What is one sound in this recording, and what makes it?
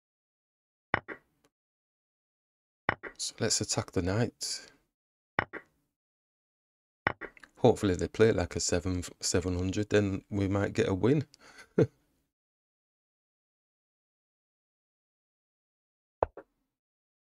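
A short digital click sounds as a chess piece is moved.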